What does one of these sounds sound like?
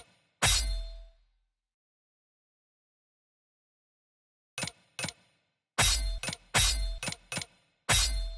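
Sharp menu chimes sound in quick bursts as game options are selected.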